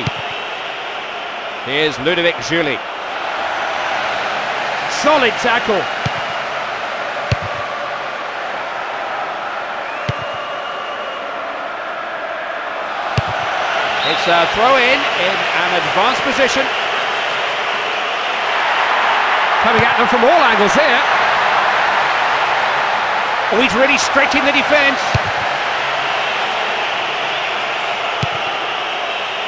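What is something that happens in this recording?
A large stadium crowd roars and murmurs steadily, swelling louder at times.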